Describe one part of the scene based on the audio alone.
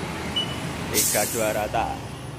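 Compressed air hisses sharply from a tyre valve.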